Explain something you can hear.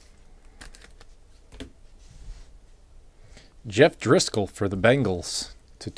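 Playing cards rustle and tap softly between hands.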